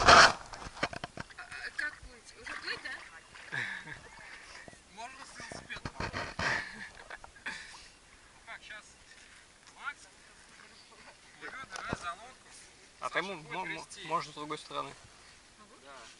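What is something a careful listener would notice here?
Young men and women talk and call out nearby outdoors.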